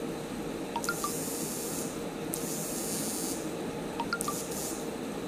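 A phone notification chime sounds twice.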